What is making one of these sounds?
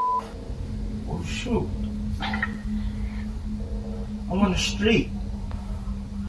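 A woman speaks quietly in a dim room.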